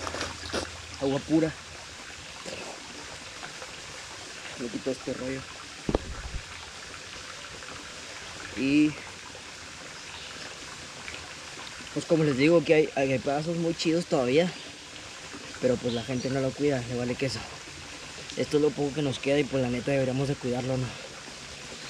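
A young man talks close to the microphone with animation.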